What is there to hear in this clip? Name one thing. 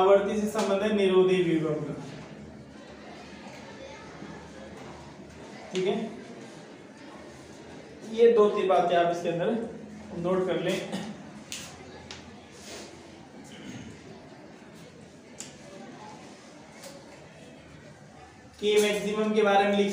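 A man lectures with animation, in short bursts with pauses.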